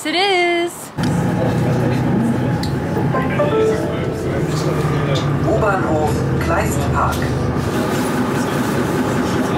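A tram rumbles steadily along a street.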